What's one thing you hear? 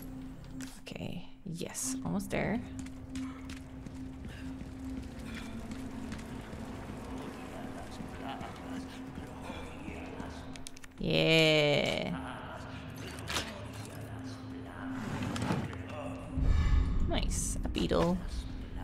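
A young woman speaks casually into a microphone.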